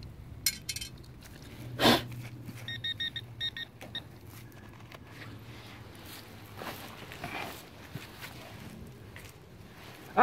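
A small hand trowel scrapes and digs into dry soil.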